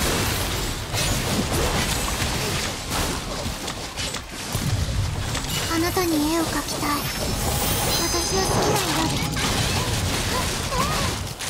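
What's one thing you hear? Sword slashes and impact blasts crash rapidly in a game battle.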